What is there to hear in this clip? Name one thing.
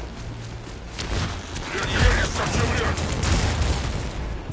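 Energy blasts crackle and boom loudly.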